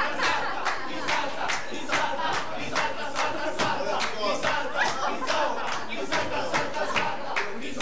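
A man sings loudly with energy.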